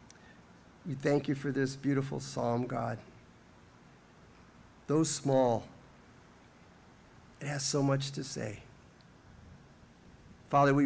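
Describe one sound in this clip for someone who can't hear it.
An elderly man speaks calmly into a microphone, pausing between phrases.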